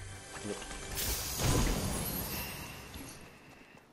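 A treasure chest bursts open with a loud whoosh and shimmering chime.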